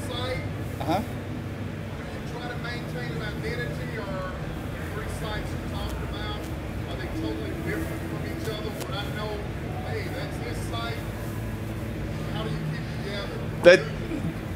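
A man speaks quietly at a distance.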